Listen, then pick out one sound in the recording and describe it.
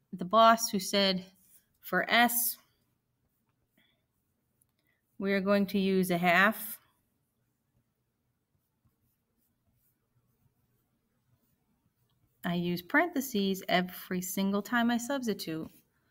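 A woman speaks calmly and clearly into a close microphone, in short bursts with pauses.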